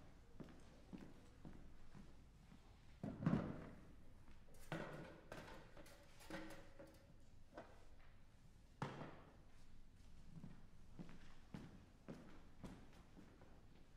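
Footsteps cross a wooden stage in an echoing hall.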